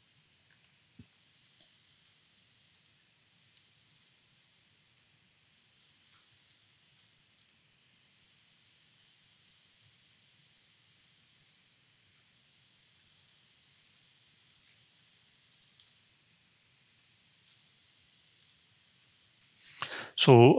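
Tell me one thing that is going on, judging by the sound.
Keyboard keys click softly as someone types.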